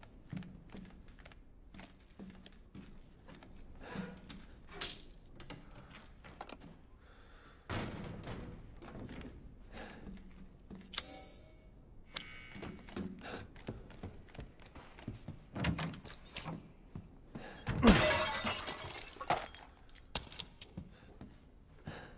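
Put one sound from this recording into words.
Footsteps creak and thud on wooden floorboards.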